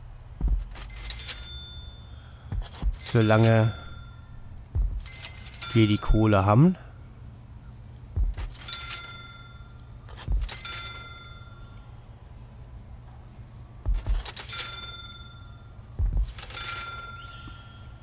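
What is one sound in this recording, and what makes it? Short bright electronic chimes sound again and again as pieces are placed in a game.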